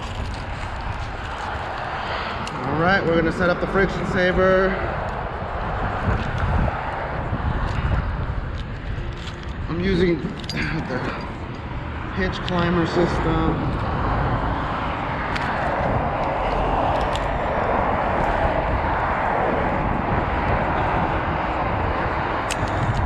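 Wind buffets and rumbles steadily outdoors.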